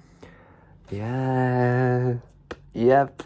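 A young man sings a drawn-out note.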